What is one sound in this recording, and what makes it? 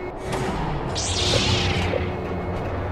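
A lightsaber ignites with a sharp hiss.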